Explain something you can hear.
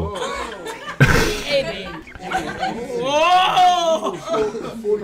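A crowd of young people laughs and cheers in a room.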